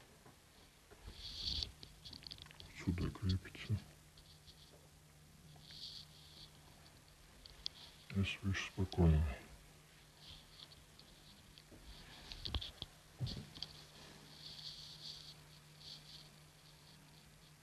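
A metal chain rattles and clinks against a door.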